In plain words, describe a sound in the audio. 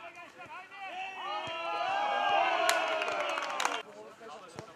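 A small crowd of spectators cheers loudly and briefly.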